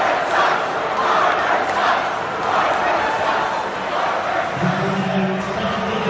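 A large crowd cheers and roars loudly in a big echoing arena.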